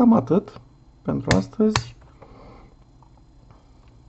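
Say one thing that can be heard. A rotary dial clicks as it is turned.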